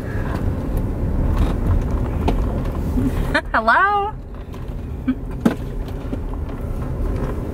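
A young woman talks and laughs close by.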